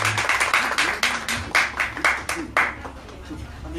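A banjo is strummed in quick bright chords.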